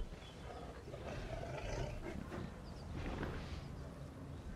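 A large animal grunts and snorts softly.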